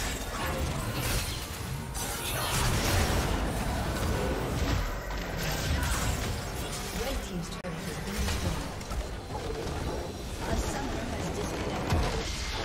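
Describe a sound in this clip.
Game spell effects crackle and clash in a busy fight.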